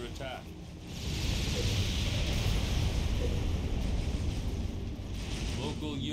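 Explosions boom and rumble in a rapid series.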